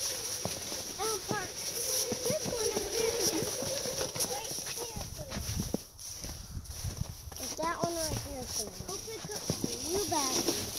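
A young child babbles and chatters nearby.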